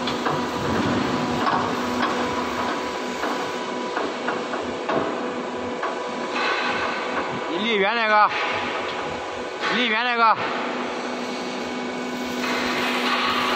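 A hydraulic scissor lift hums as it rises.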